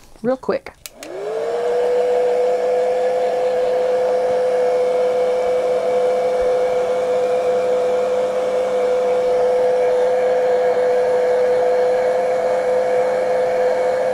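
A heat gun blows with a steady whirring roar.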